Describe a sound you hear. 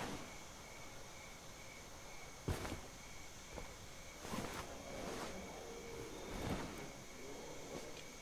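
Hands and boots clank on metal ladder rungs during a climb.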